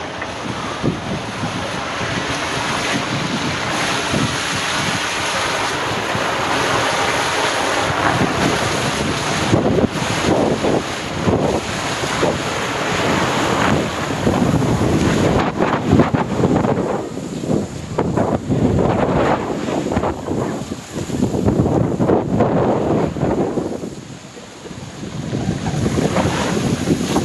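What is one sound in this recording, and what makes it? Water rushes and splashes loudly down a slide.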